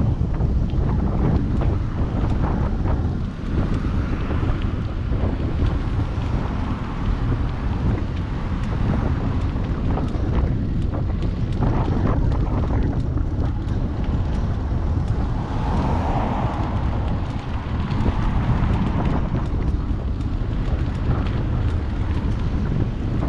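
Wind rushes loudly and steadily past, outdoors.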